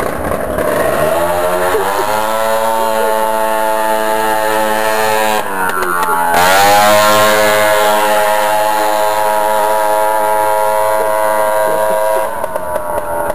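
A scooter engine whines closer, roars past up close and fades away down the street.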